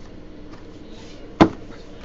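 A cardboard box is set down on a table with a light knock.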